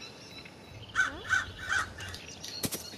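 A crow caws loudly three times.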